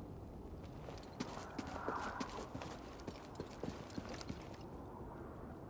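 Footsteps scrape over rock.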